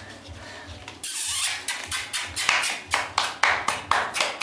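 Puppies whimper and yelp close by.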